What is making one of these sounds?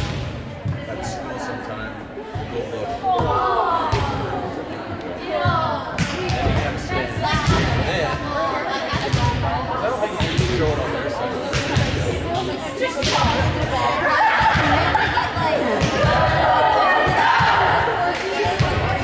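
Volleyballs bounce and thud on a wooden floor.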